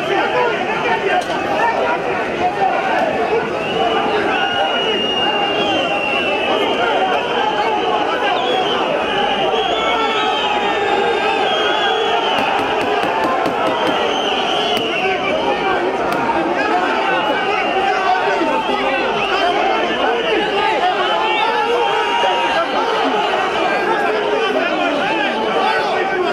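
A large crowd of men shouts and jeers loudly outdoors.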